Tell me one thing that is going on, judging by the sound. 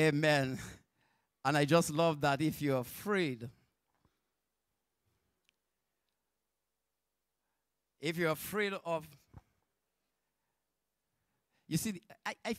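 A man preaches into a microphone through loudspeakers, speaking with emphasis in short bursts and pauses.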